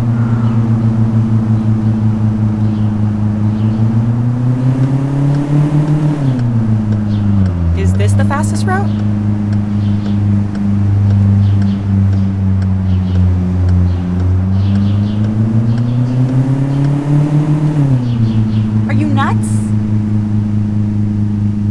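A car engine hums steadily, revving up and dropping as the car shifts gears.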